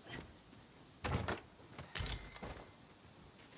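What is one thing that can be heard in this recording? A wooden chest lid creaks open with a thud.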